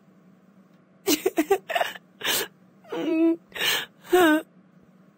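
A young woman speaks calmly into a headset microphone.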